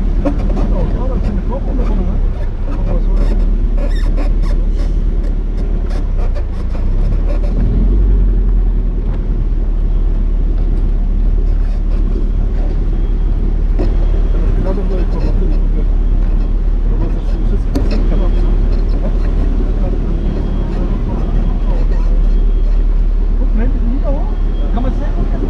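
A car engine rumbles steadily at low speed.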